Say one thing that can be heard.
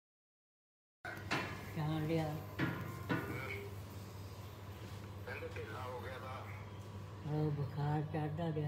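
An elderly man speaks warmly into a phone, close by.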